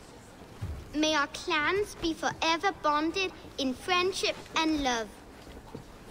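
A young boy speaks calmly and earnestly up close.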